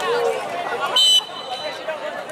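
A whistle blows sharply once.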